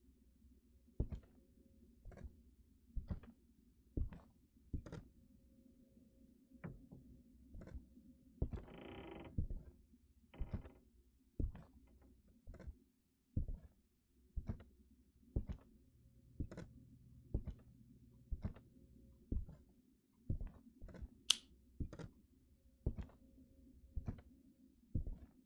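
Slow footsteps thud on a wooden floor.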